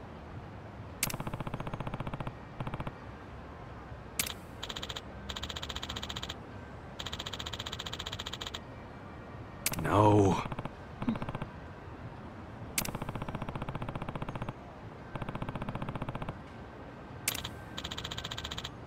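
Rapid electronic blips chatter as dialogue text types out.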